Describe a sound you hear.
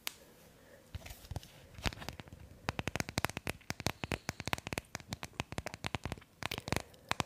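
Fingernails tap rapidly on a small card close to a microphone.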